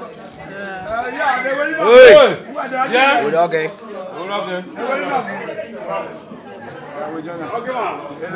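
An elderly man talks and laughs loudly nearby.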